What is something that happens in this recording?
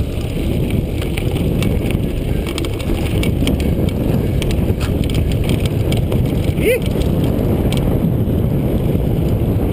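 Bicycle tyres rumble over a bumpy dirt trail.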